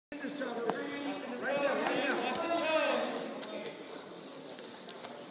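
Wrestlers' shoes squeak and thump on a mat.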